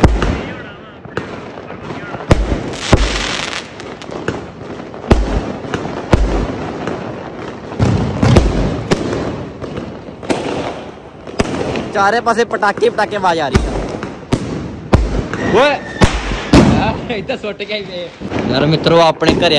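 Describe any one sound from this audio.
Fireworks bang and crackle repeatedly outdoors.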